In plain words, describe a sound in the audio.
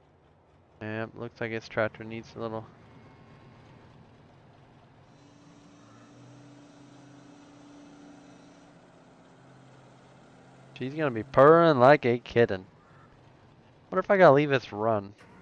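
A tractor engine idles with a low steady rumble.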